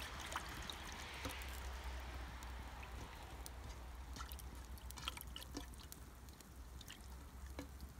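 A hand swishes small fish around in water.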